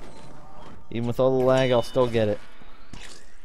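A cheerful game chime rings as points are collected.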